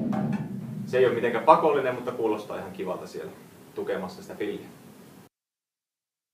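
A drum kit is played with sticks, with snare hits and cymbal strikes.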